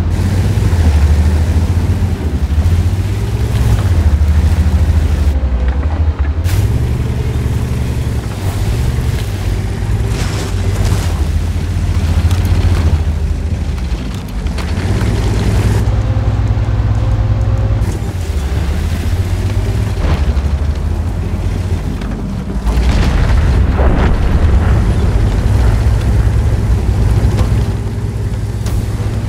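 A tank engine rumbles steadily and deeply.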